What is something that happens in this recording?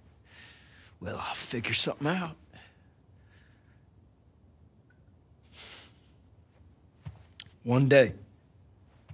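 A man answers calmly.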